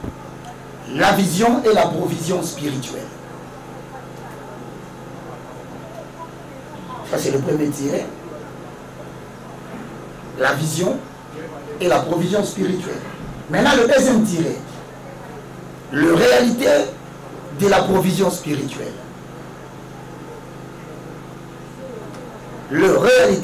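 A man speaks forcefully into a microphone in short bursts with pauses.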